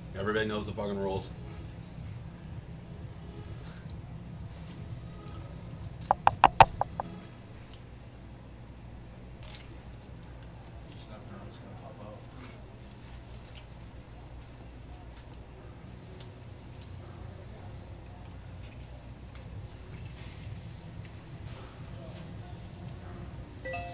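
A man chews and eats food.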